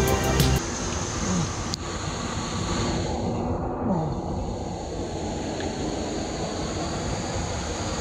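Water trickles and splashes steadily over rocks close by.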